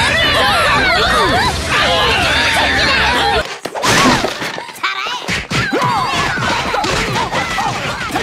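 Cartoon fight noises bang and clatter in a busy scuffle.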